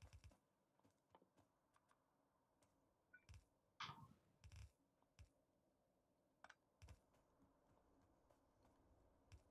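Short clicks sound now and then.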